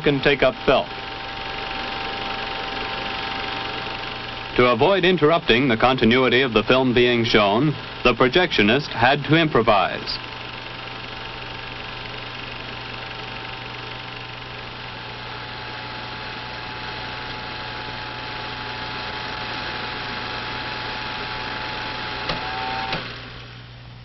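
A film projector whirs steadily.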